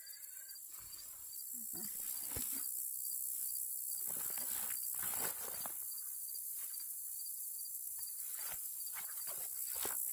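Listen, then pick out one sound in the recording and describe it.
A backpack rustles as a woman rummages through it.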